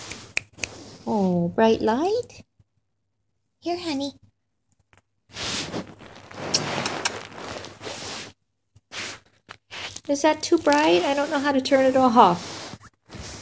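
A kitten meows in high, plaintive cries.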